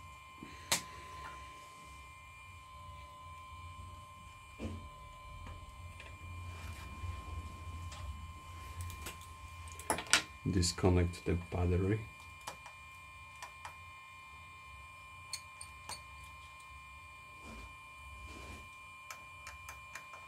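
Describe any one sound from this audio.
Small metal tools tap and click against a phone.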